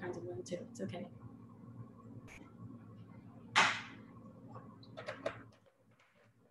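A woman talks calmly over an online call.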